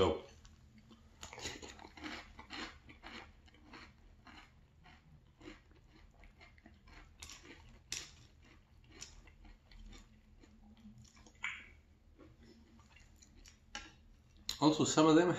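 A young man crunches cereal loudly.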